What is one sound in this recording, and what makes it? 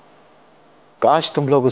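A middle-aged man speaks sternly and loudly, close by.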